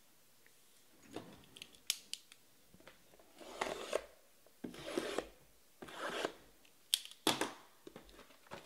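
Boxes scrape and knock against one another as hands move them.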